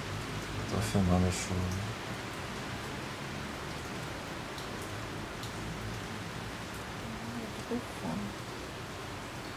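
Rain falls steadily on leaves.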